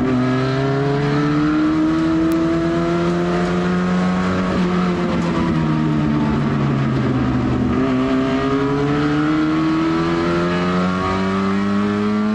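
A race car engine roars loudly from inside the cabin, its pitch rising and falling as the driver shifts gears.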